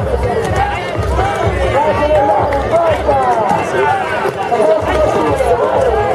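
A large crowd shouts and cheers loudly outdoors.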